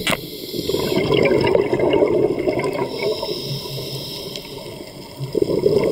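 A diver breathes noisily through a regulator underwater.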